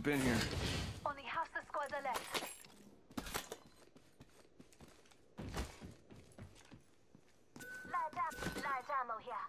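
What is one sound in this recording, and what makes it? Footsteps patter quickly across a hard floor.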